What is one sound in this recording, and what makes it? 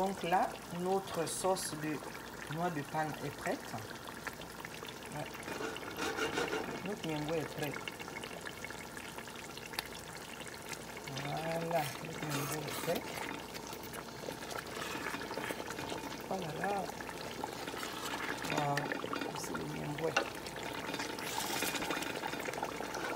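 A thick stew bubbles and simmers in a pot.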